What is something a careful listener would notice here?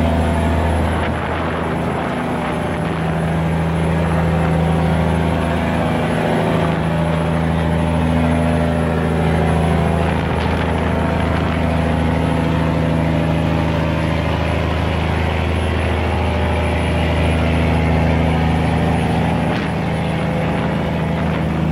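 Water churns and splashes in rough waves.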